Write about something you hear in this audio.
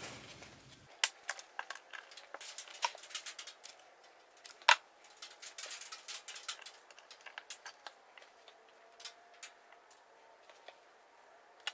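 Small metal parts click and tap on a wooden bench.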